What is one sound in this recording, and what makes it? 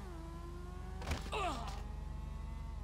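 A body thuds heavily onto a wooden deck.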